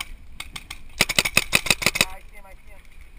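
A paintball gun fires in a rapid burst of pops.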